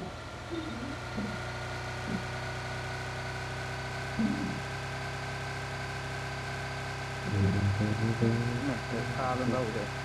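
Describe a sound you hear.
A car engine hums steadily as the car drives over grass.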